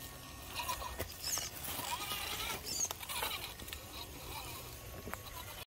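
A small electric motor whirs.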